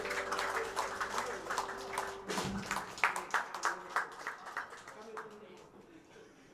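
A live band plays a song.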